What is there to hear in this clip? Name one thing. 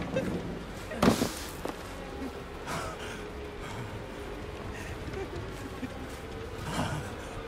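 Heavy footsteps crunch through dry grass.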